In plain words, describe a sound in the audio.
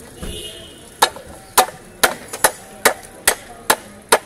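A heavy knife chops through fish onto a wooden block.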